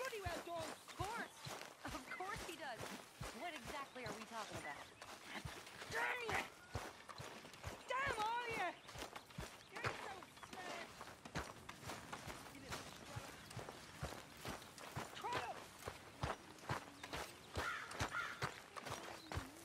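Boots walk on grass.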